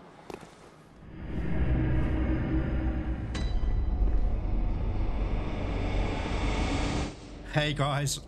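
A deep magical whoosh swells and rumbles.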